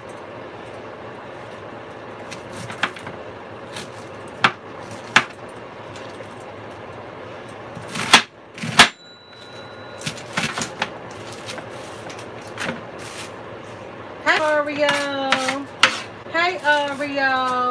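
A knife chops through cabbage onto a cutting board with sharp knocks.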